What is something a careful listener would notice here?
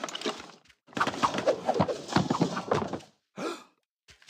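A soft whooshing puff sounds.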